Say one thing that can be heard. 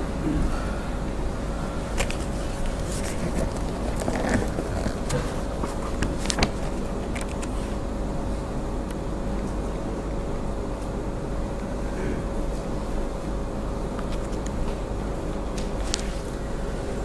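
A man speaks softly and close into a microphone.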